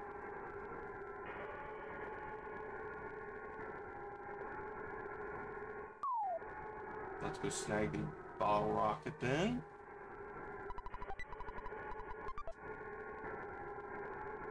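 Upbeat video game music plays steadily.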